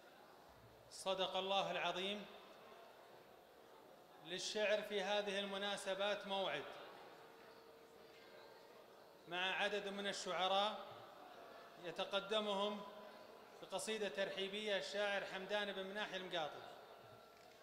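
A man sings or chants in long drawn-out phrases through a microphone in a large echoing hall.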